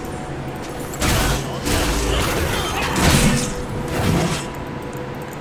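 Fighting sound effects from a video game clash and burst.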